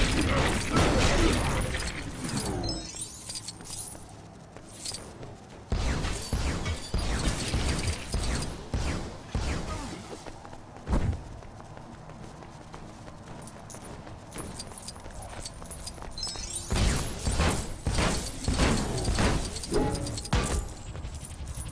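Objects smash and clatter apart.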